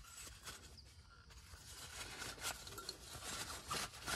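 Metal parts click and clink as they are fitted together.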